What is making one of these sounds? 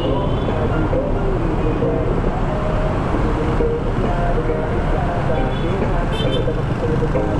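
Motorcycle engines rumble and drone in a tunnel.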